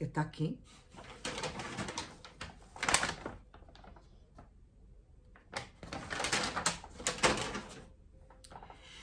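A paper bag rustles and crinkles.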